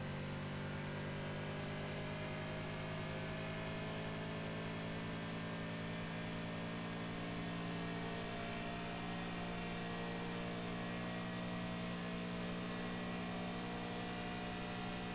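A sports car engine roars steadily at high speed, its pitch creeping slowly higher.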